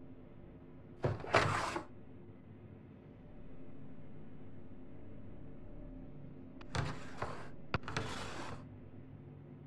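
A metal drawer slides open with a scrape.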